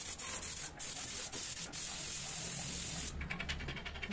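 A spray gun hisses steadily as paint is sprayed.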